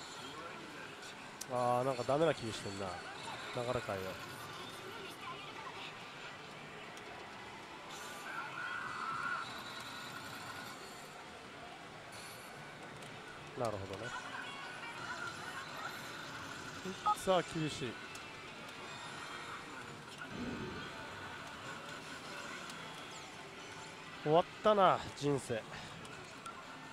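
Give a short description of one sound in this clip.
A slot machine plays electronic music and sound effects.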